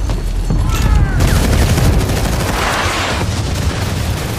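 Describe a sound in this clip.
An explosion booms and roars.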